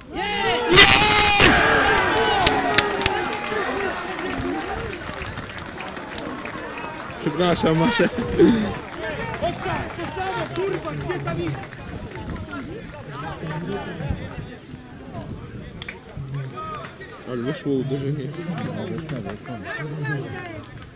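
Young men shout to each other across a football pitch outdoors.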